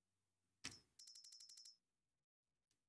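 A game menu ticks rapidly as a list scrolls.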